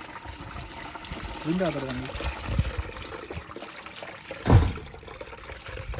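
Liquid pours and splashes from a pot into a strainer.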